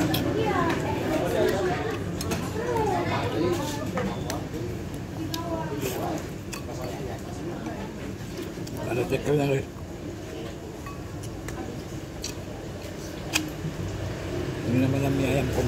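A man slurps soup from a spoon.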